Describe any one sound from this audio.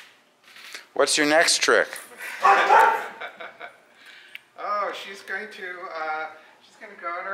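A man speaks calmly and encouragingly to a dog, close by.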